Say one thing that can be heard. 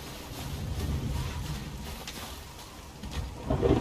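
Heavy footsteps crunch on snow.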